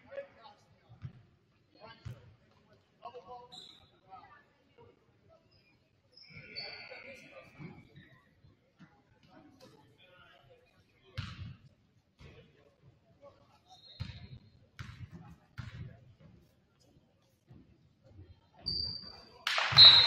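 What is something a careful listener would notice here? A basketball bounces on a wooden floor with dull thumps.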